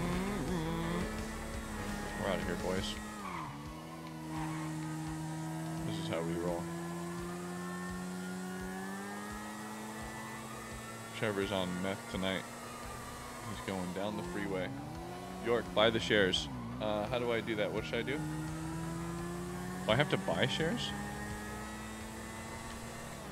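A motorcycle engine hums steadily and shifts in pitch as it speeds up and slows down.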